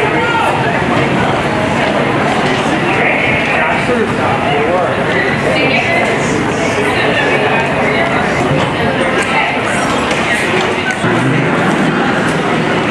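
A crowd of men and women chatter all around in a busy indoor space.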